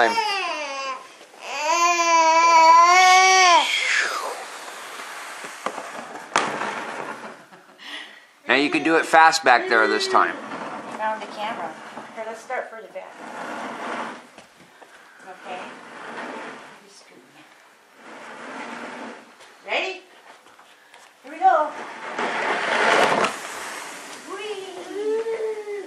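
A plastic sled scrapes across a hard floor.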